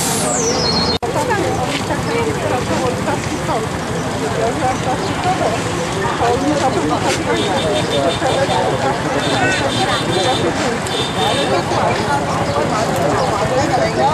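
A motorised rickshaw engine rumbles as it drives along.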